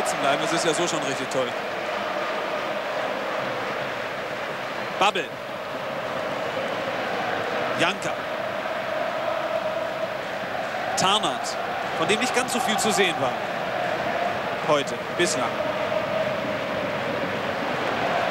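A large crowd murmurs and chants steadily in a stadium, heard from a distance.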